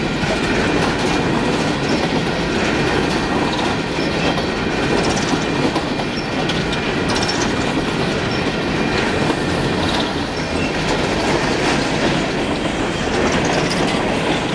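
A long freight train of coal hopper cars rolls past close by.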